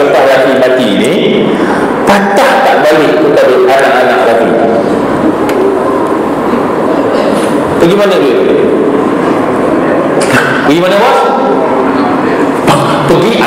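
A man speaks with animation through a microphone in an echoing hall.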